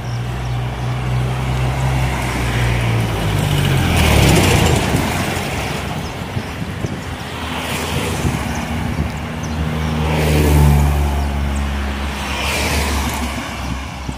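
Cars drive past one after another with a rush of tyres.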